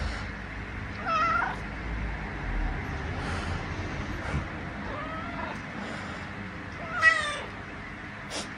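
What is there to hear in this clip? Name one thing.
A cat meows close by, several times.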